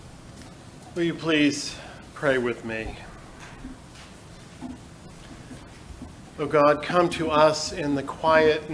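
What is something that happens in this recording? A middle-aged man speaks calmly through a microphone in a large echoing room.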